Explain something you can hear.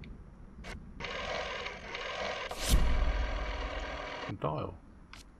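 A rotary telephone dial clicks and whirs as it turns back.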